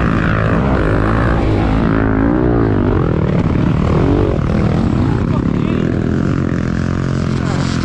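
A four-stroke dirt bike engine runs.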